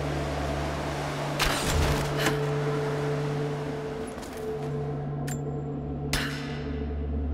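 An arrow is loosed from a drawn bow.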